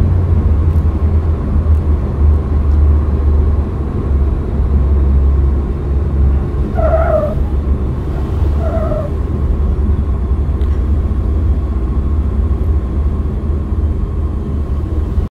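A small propeller plane's engine drones steadily through a loudspeaker.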